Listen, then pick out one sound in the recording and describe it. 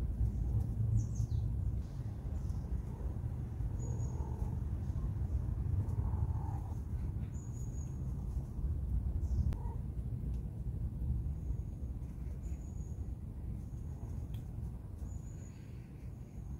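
A cat eats from a bowl, chewing and lapping softly.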